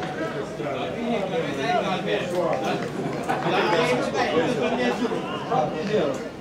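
Young men argue with animation outdoors.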